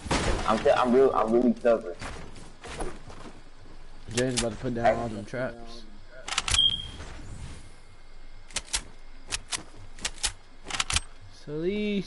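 Wooden building pieces snap into place with quick, sharp knocks.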